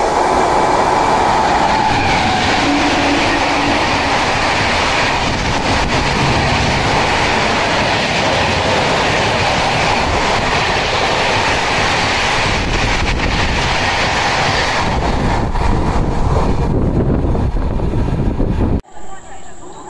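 A train rushes past at close range with a loud, steady roar and rattle of wheels.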